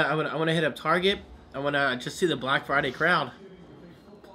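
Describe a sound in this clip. A man talks close up with animation.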